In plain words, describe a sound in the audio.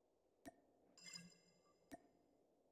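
A short bright chime plays for a reward.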